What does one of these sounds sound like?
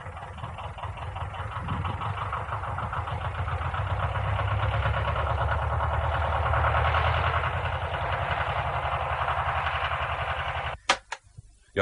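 A tractor engine rumbles and drones steadily.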